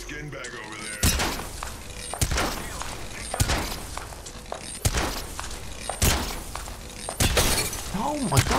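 Gunshots fire in short bursts and echo.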